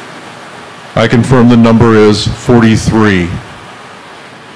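An older man speaks calmly through a microphone in a large room.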